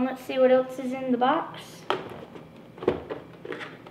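Cardboard scrapes and rubs as a box is opened.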